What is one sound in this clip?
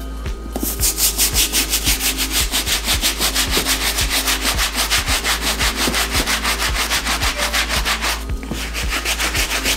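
A brush scrubs a sneaker in quick, steady, rhythmic strokes.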